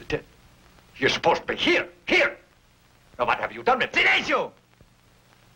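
An older man speaks sternly, close by.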